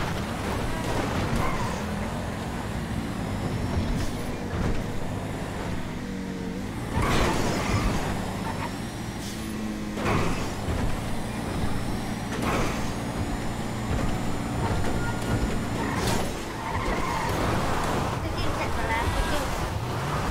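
A car engine roars at high speed, rising and falling as it shifts gears.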